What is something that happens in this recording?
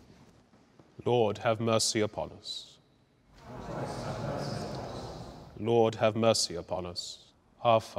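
A man reads aloud in a calm, measured voice, echoing in a large hall.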